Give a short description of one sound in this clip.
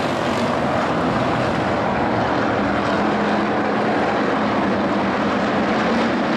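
Several race car engines roar loudly.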